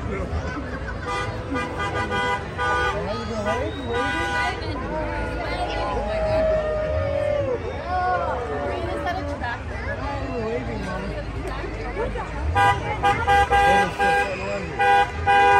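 Music plays loudly from a passing parade float.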